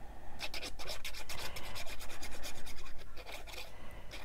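A glue stick rubs across paper.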